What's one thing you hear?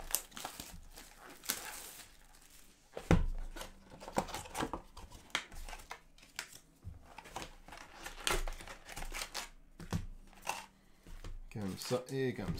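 Plastic wrapping crinkles and rustles as packs are handled.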